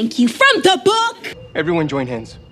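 A girl exclaims with animation.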